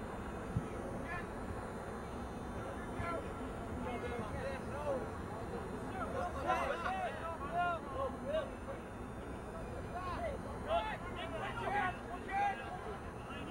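Spectators nearby shout and call out outdoors.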